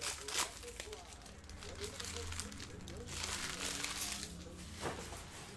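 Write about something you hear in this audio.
A foil wrapper crinkles and tears as it is opened.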